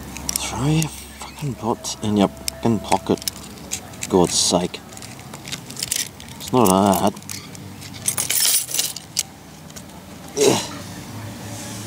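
Metal keys jingle and scrape against wood.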